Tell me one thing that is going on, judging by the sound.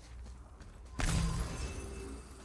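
A heavy stone slab grinds and rumbles as it shifts.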